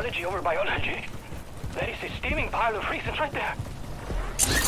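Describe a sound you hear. A young man talks with animation through a headset microphone.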